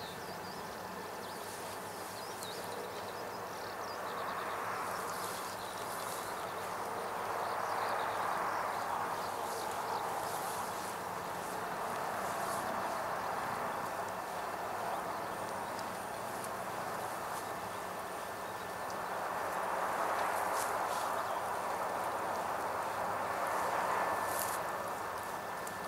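Water sprays from a hose onto plants and soil, swelling and easing as the spray moves.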